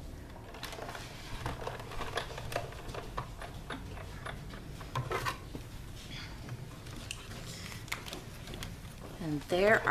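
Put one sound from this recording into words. A hand-cranked die-cutting machine clicks and rolls as a plate is fed through.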